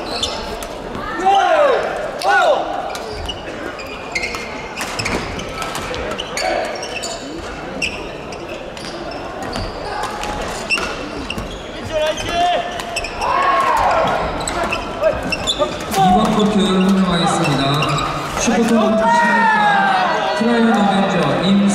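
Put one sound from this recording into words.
Sneakers squeak on the court floor.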